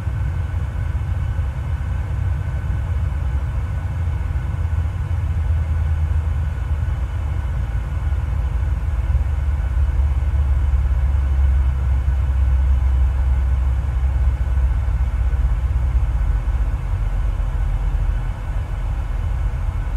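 A jet engine drones with a steady low roar.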